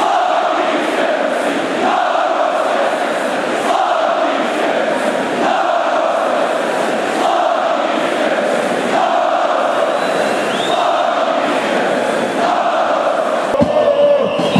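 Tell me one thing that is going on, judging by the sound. A large stadium crowd chants loudly in rhythm.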